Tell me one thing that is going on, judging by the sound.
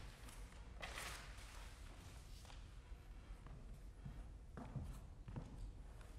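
A violin plays in a hall with a soft echo.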